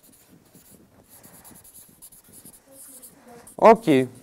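A marker squeaks on paper.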